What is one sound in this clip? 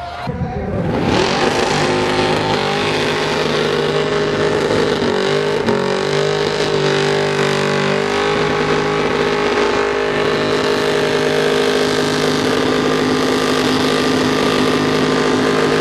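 A car engine roars and revs at a high pitch.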